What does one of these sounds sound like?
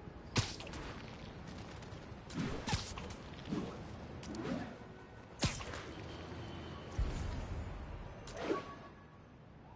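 Wind rushes past in fast swooping gusts.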